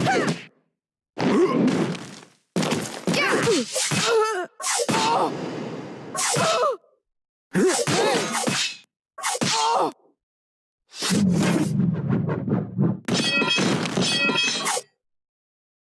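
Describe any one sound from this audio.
Blows land with heavy thuds and sharp swooshes in a fight.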